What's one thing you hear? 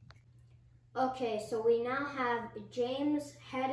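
A boy speaks up close to the microphone.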